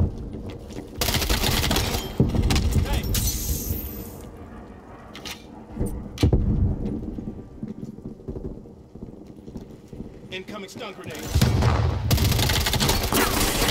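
Rapid gunfire rattles in close bursts.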